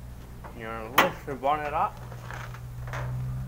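A metal bonnet is lifted open.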